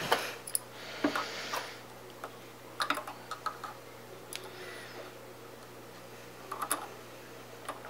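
A metal tool clicks and scrapes against small metal parts.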